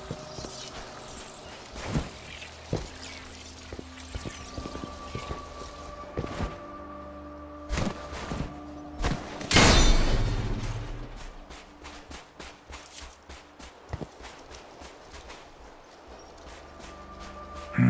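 Footsteps thud quickly over dirt and rock.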